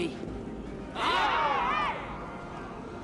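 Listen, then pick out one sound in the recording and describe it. A crowd cheers together.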